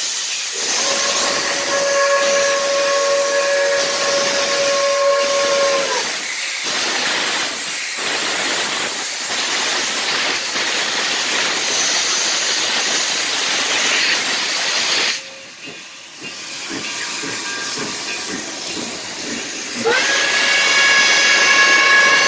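A steam locomotive chuffs and hisses steam as it passes close by.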